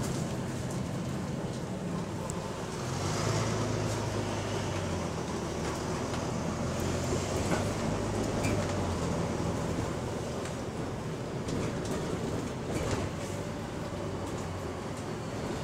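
A bus engine hums and rumbles steadily, rising in pitch now and then.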